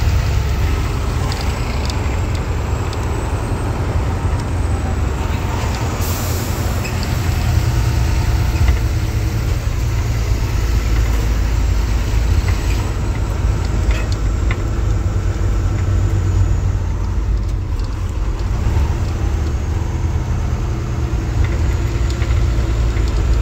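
Wind rushes past an open truck window.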